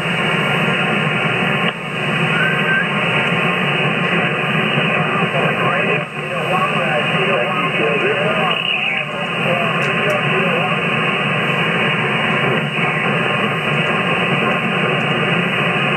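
Radio static hisses steadily from a receiver's loudspeaker.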